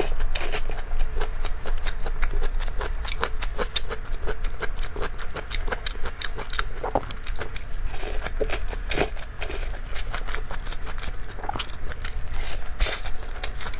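A young woman chews food close to a microphone with wet, crunchy sounds.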